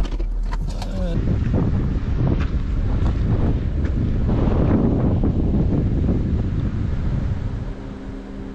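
Wind blows against a microphone outdoors.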